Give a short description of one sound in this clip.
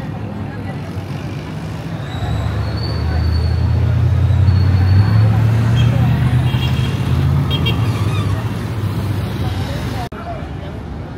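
Traffic rumbles past on a busy street.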